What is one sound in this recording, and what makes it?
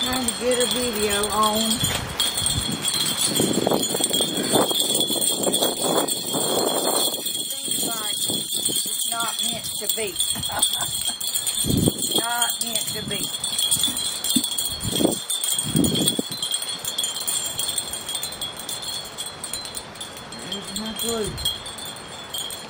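An elderly woman talks calmly nearby, outdoors.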